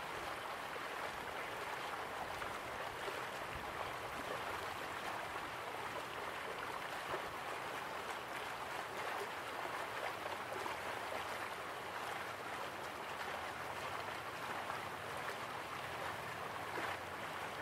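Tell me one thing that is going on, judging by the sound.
A small waterfall splashes steadily into a pool.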